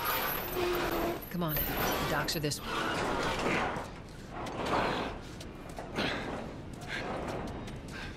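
A metal roller shutter rattles as it is hauled up.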